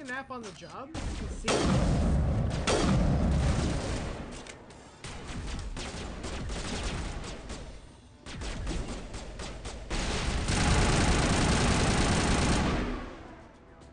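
Gunfire and blasts rattle loudly in a fast firefight.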